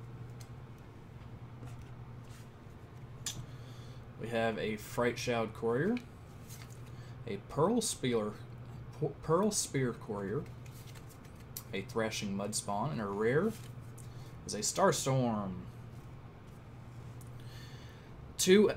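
Playing cards slide and rustle softly against each other.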